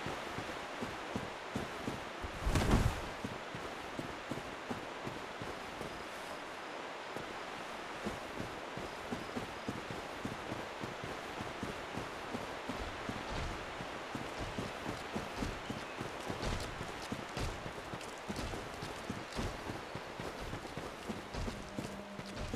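Footsteps thud and rustle through grass at a running pace.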